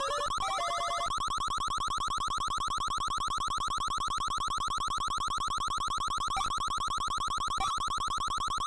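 Short electronic beeps sound.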